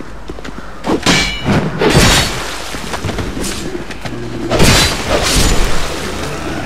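Wooden barricades crash and splinter as they are smashed.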